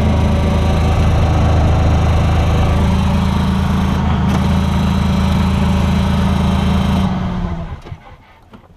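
A diesel engine idles loudly close by, then shuts off.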